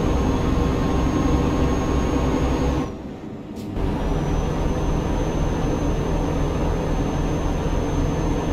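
A truck engine drones steadily on the road.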